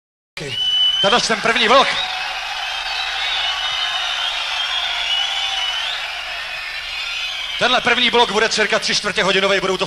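A man sings harshly through a microphone.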